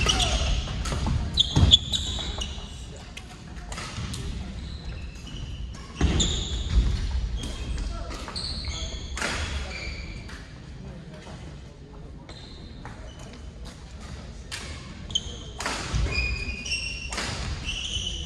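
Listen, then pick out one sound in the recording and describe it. Shuttlecocks are hit with sharp pops of rackets in a large echoing hall.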